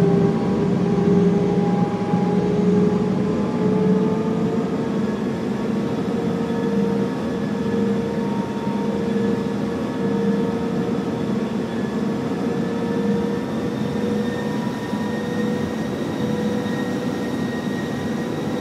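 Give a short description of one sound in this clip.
Jet airliner engines whine, slowly rising in pitch, as the plane rolls along a runway.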